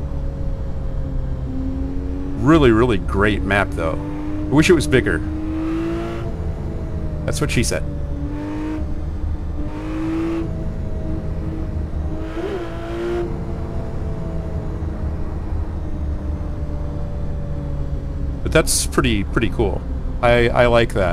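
A car engine hums steadily and rises and falls in pitch.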